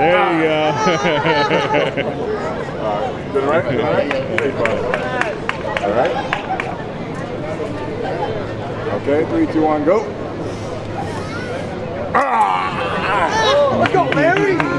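A man talks loudly and with animation close by, outdoors.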